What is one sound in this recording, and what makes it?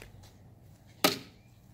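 A plastic bat smacks a ball.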